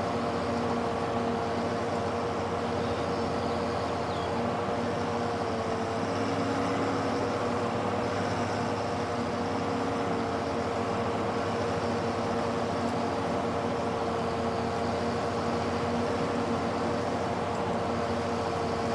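A mower whirs as it cuts grass.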